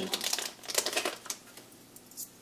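Small plastic parts clink and rattle in hands.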